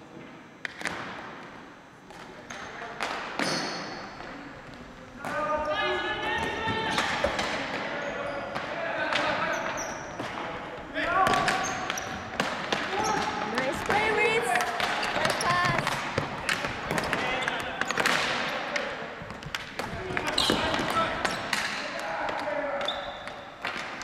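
Hockey sticks clack and tap against a ball and the floor in an echoing hall.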